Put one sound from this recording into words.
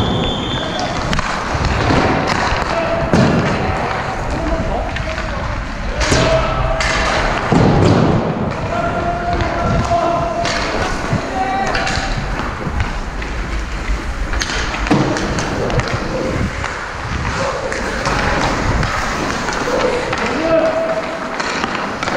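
Hockey sticks clack against pucks on the ice.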